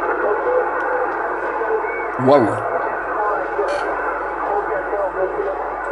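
A radio receiver hisses and crackles with static.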